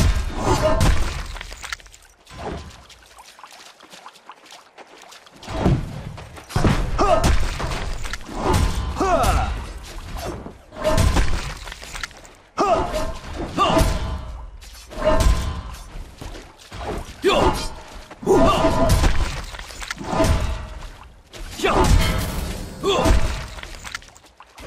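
Magic blasts and weapon strikes clash in a fight.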